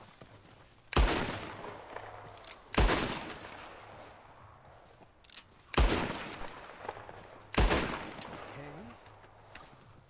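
A revolver fires sharp shots that ring out and fade.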